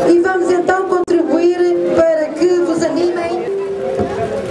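A singer sings loudly through loudspeakers outdoors.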